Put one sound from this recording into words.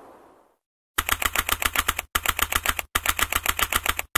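Rapid electronic blips tick as letters type out one by one.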